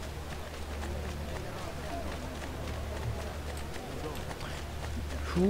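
Footsteps patter quickly on stone as a figure runs.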